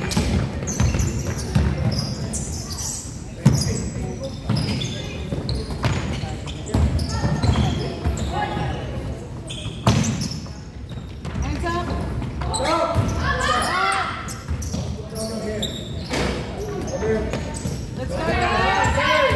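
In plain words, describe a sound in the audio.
Sneakers squeak sharply on the hardwood floor.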